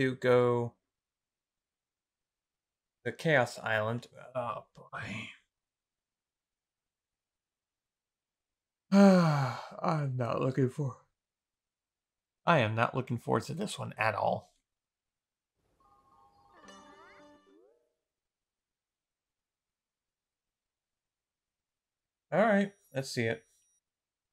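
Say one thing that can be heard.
A young man speaks close to a microphone in short bursts, with animation.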